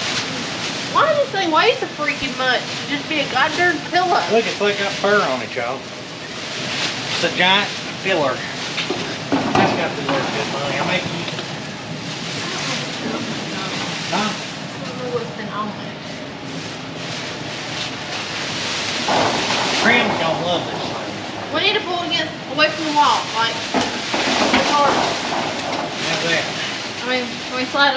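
A plastic sheet rustles and crinkles.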